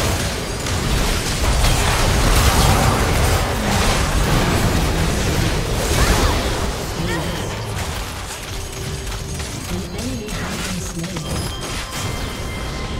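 Magic blasts whoosh and crackle in a busy fight, loud at first and calmer later.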